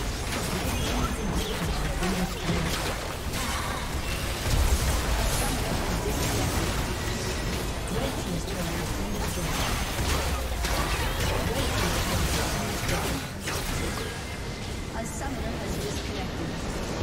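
Video game spells and attacks crackle, zap and thump rapidly.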